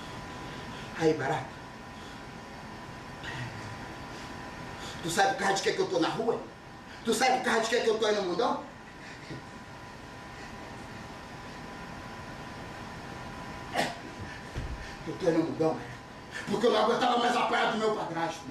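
A man speaks with feeling, in short bursts, heard from a distance in a large room.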